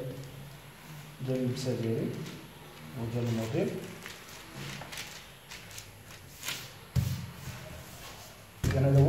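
Paper rustles and crinkles as hands fold and smooth it.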